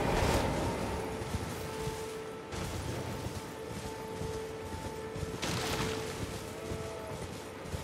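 A horse gallops over grass.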